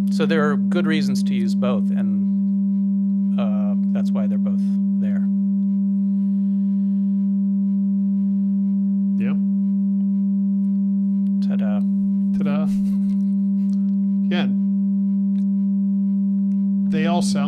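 A man speaks calmly into a close microphone, in short bursts.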